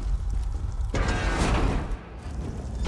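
A heavy door opens with a loud whoosh.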